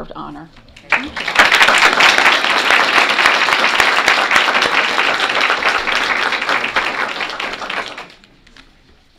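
Applause fills a room.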